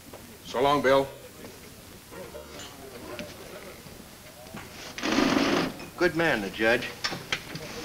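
A man speaks in a deep voice, close by.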